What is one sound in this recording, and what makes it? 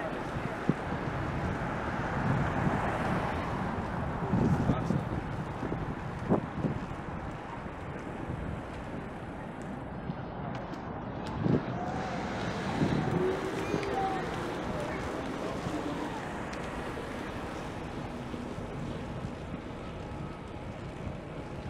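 Wind rumbles and buffets steadily while riding along a street outdoors.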